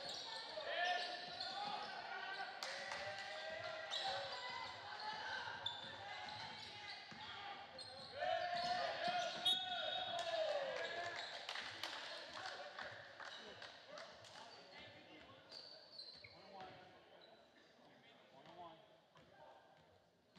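Spectators cheer and call out in a large echoing gym.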